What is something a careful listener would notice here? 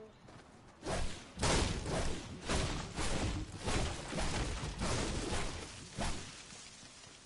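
A pickaxe strikes something in quick, repeated blows.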